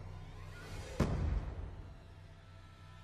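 A deep booming sound hits as a game round ends.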